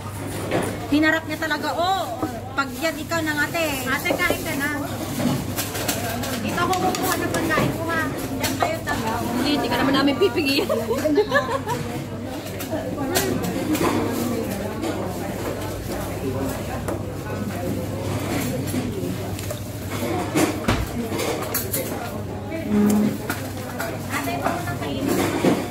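Diners chatter in the background of a busy room.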